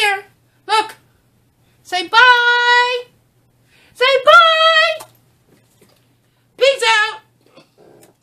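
A woman sings short, high, drawn-out notes close to a microphone, with pauses between them.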